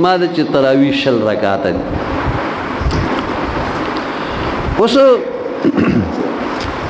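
An elderly man speaks into a microphone in a slow, chanting way.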